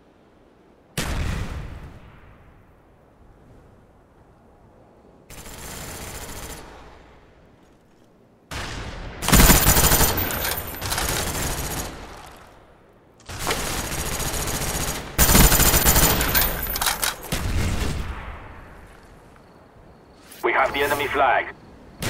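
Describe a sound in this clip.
Gunfire rattles in loud bursts, with pauses between them.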